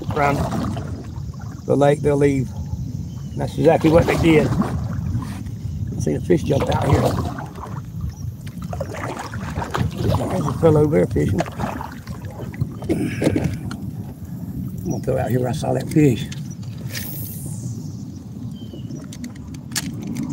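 Water laps gently against the hull of a small boat.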